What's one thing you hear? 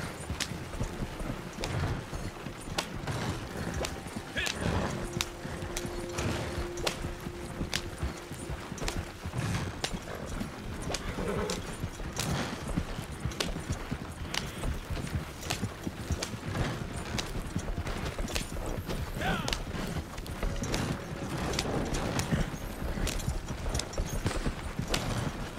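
Horse hooves clop steadily on the dirt.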